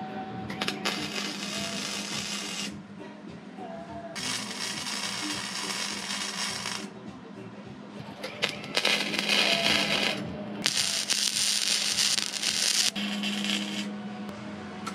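An arc welder crackles and hisses in short bursts.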